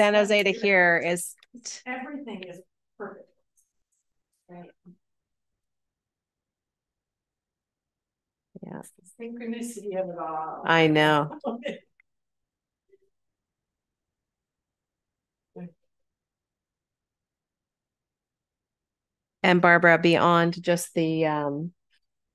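A woman talks calmly through an online call, in short bursts with pauses.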